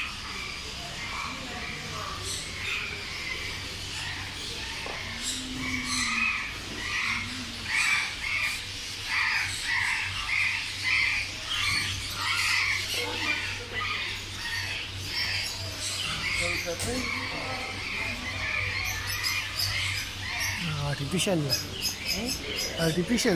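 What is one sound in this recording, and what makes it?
Many small caged birds chirp and twitter busily nearby.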